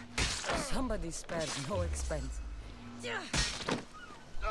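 A blade strikes flesh with a sharp thud.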